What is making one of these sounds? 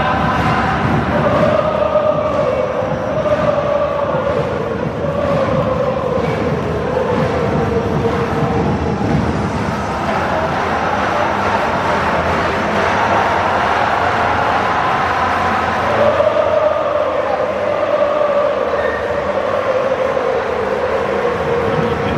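A huge crowd of fans chants and sings loudly in unison in a large open stadium.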